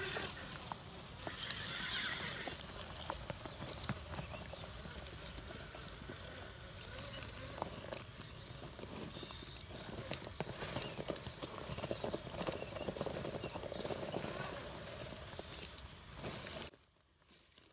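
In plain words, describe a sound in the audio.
Plastic tyres scrape and knock against rocks and dry leaves.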